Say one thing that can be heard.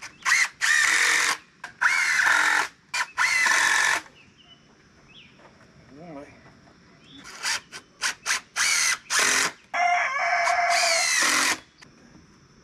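A power drill whirs in short bursts as it drives screws into wood.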